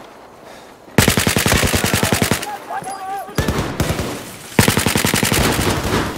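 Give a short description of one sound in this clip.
A rifle fires rapid bursts of shots close by.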